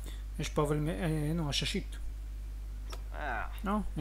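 A lantern switch clicks on.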